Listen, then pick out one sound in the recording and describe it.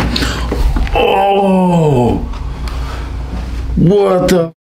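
A man groans loudly.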